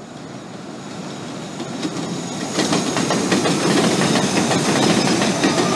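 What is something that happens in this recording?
A subway train approaches and roars past with a rising rumble.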